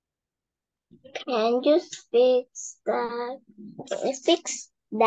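A young girl speaks softly over an online call.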